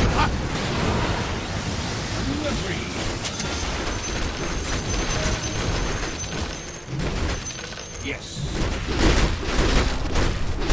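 Magic spells and weapon blows clash in a busy video game battle.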